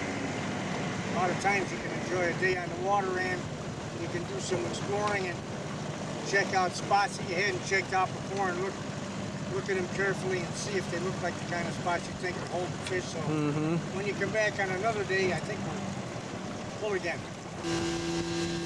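An outboard motor idles steadily.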